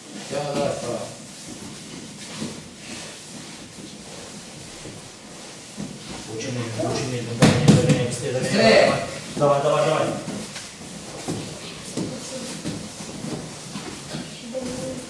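Children shout and chant together in a large echoing hall.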